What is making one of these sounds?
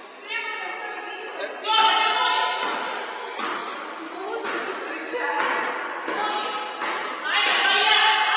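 Young women shout to each other in a large echoing hall.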